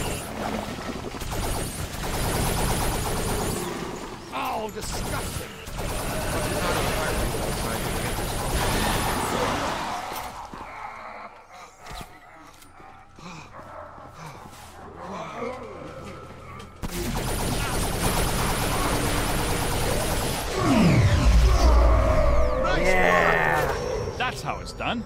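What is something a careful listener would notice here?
Gunfire and energy blasts crackle loudly.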